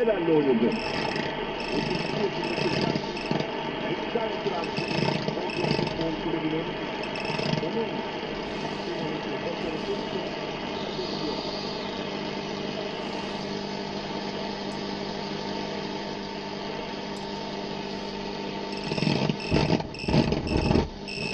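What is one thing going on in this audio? A knob clicks as it is turned.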